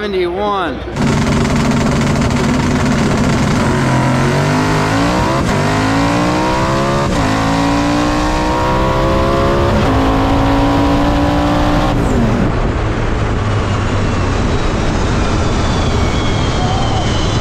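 A race car engine roars loudly up close, climbing in pitch through each gear change.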